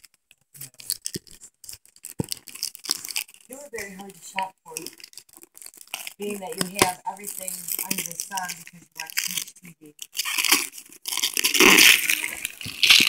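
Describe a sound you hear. Wrapping paper rustles and crinkles close by.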